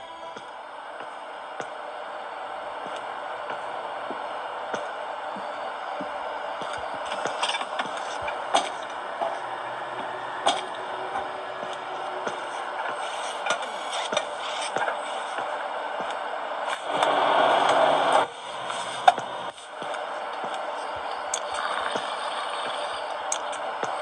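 Fingertips tap lightly on a glass touchscreen.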